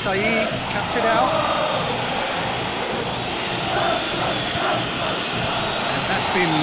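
A large crowd roars steadily in a big open stadium.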